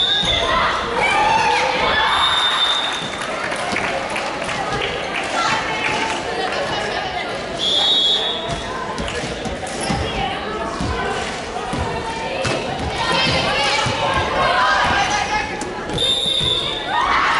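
A volleyball thuds off hands and forearms.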